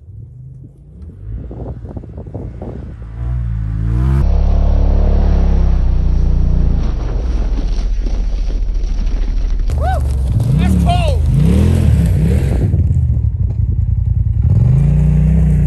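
A side-by-side's engine drones far off and grows louder as it approaches, revving as it passes close by.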